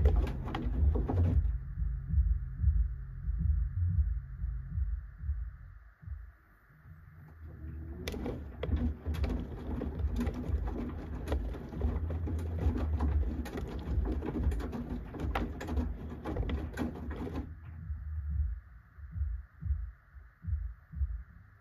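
A washing machine drum turns with a low rumble.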